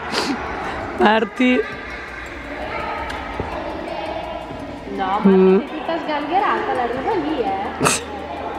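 Young girls call out and chatter in an echoing hall.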